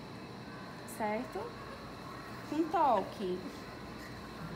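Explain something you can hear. A woman speaks briefly nearby in a high, animated voice.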